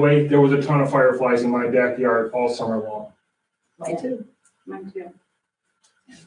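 A man speaks calmly into a microphone in a quiet room.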